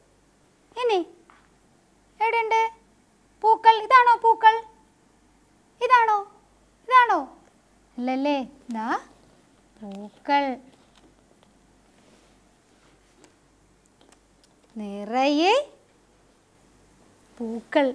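A woman speaks slowly and clearly, in short phrases, close to a microphone.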